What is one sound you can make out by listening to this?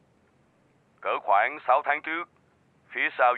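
A man speaks calmly through a tablet's small speaker.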